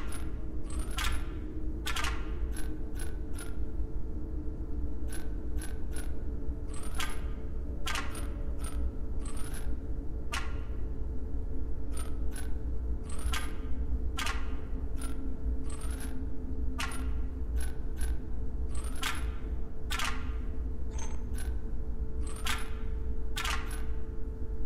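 Game tiles click sharply as they slide into place, again and again.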